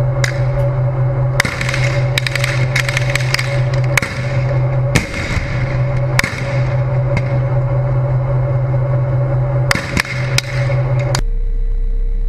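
Gunfire crackles in bursts nearby.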